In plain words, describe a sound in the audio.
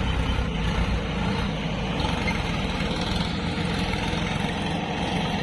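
A backhoe loader's engine rumbles nearby.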